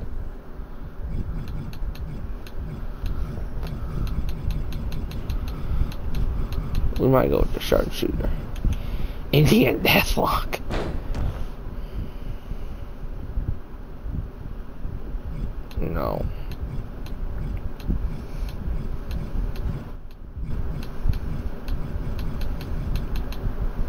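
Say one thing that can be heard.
Short menu ticks click again and again.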